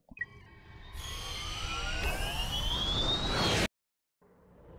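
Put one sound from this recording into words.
A spaceship engine roars with a rising whine as it lifts off.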